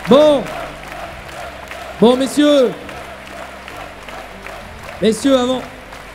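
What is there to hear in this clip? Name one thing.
A large crowd applauds steadily in a large echoing hall.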